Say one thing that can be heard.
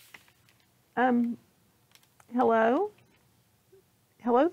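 A middle-aged woman reads aloud with lively expression close to a microphone.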